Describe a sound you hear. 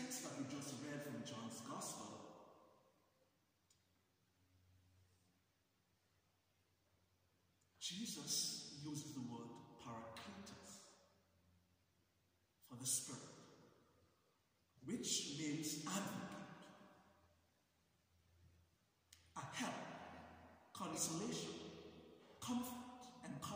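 A man speaks slowly and calmly at a lectern microphone, with long pauses, in a large echoing hall.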